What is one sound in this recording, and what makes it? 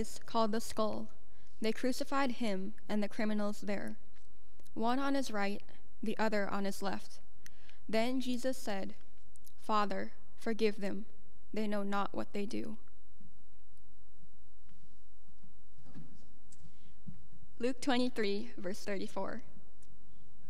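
A young woman speaks calmly into a microphone in a large echoing room.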